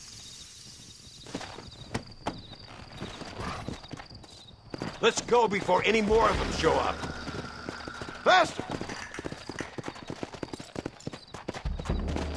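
Horse hooves clop steadily on dirt and stone.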